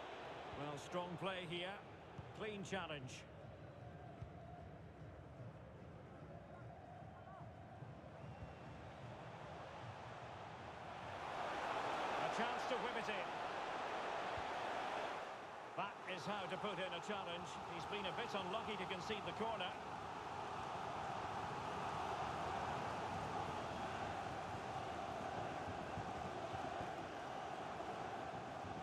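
A large crowd cheers in an open stadium.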